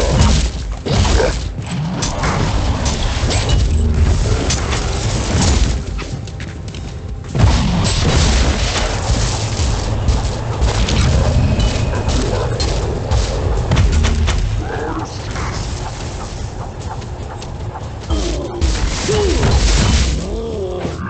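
Blasts boom against monsters.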